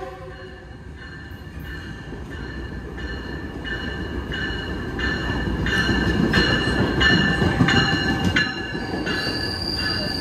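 A locomotive bell rings.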